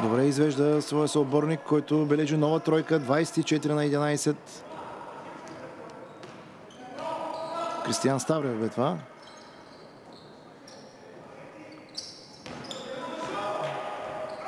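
A basketball bounces on a hardwood court in a large echoing hall.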